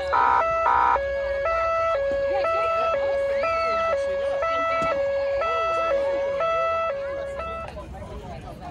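A police car siren sounds a two-tone wail, then stops.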